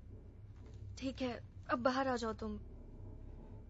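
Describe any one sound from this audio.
A young woman cries out in fear close by.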